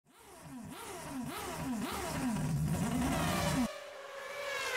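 A small engine revs up and down repeatedly.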